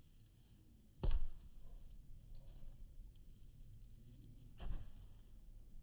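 A ball thumps when kicked on grass.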